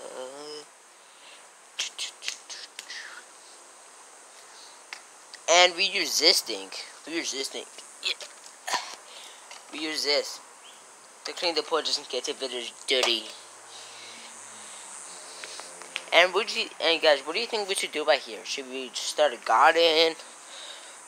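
A boy talks with animation close to the microphone.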